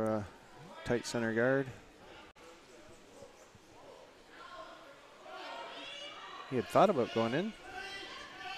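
A man shouts loudly to teammates, echoing in a large hall.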